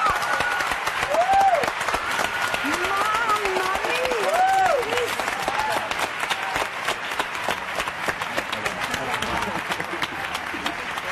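An audience claps steadily throughout.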